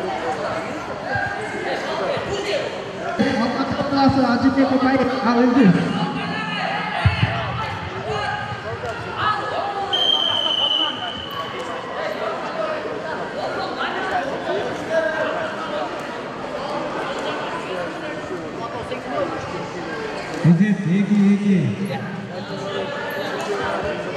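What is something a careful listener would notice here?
Wrestlers' feet thump and shuffle on a mat.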